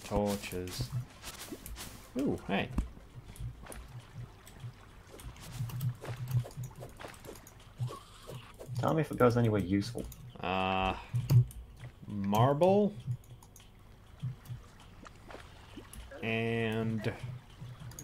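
A video game character's grappling hook fires and clinks repeatedly.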